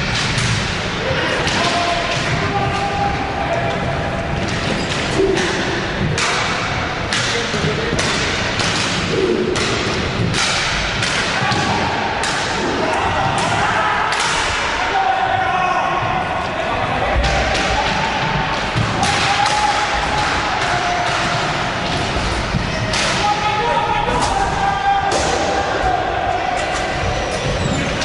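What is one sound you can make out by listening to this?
Hockey sticks clack sharply against a ball and against each other.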